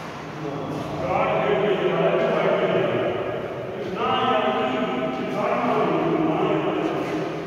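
Young men shout and call out loudly in an echoing hall.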